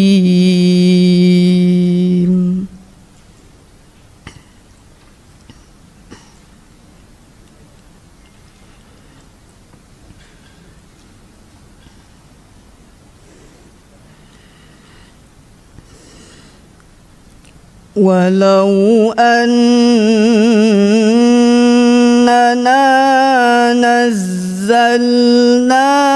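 A young woman chants a recitation in a long, wavering melodic voice through a microphone.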